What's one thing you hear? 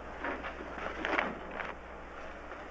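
Paper rustles as a sheet is folded.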